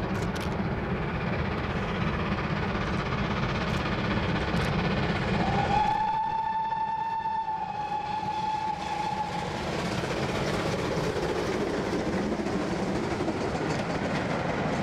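A steam locomotive chuffs hard as it approaches.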